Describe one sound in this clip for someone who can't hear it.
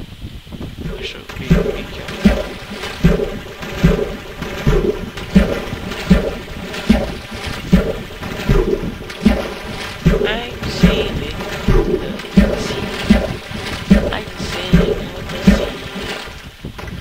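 Water splashes in a steady rhythm.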